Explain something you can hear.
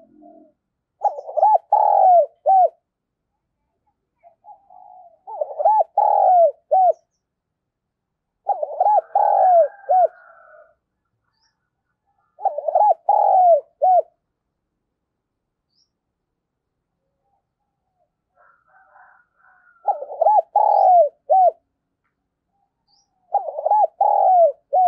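A dove coos close by in repeated short phrases.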